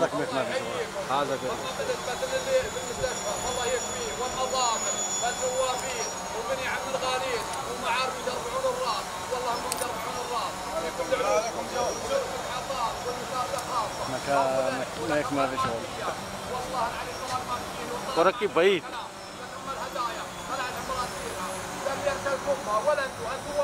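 A group of men chant together in unison outdoors.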